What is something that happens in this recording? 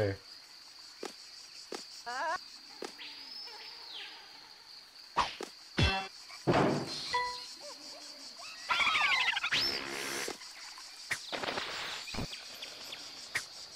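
Cartoonish video game sound effects boing, blip and chime.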